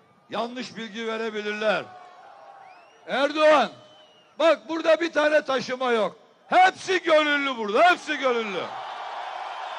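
A man shouts forcefully into a microphone, heard through loudspeakers outdoors.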